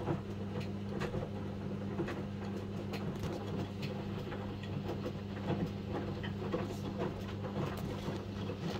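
A front-loading washing machine hums as its drum turns.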